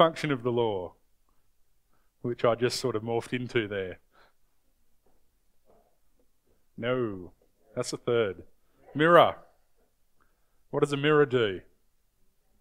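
A young man speaks calmly in short phrases with long pauses.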